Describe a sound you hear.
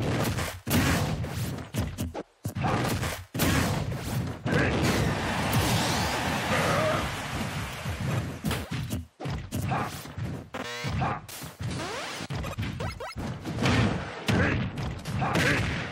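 Sharp video game hit sounds crack and thud during a fight.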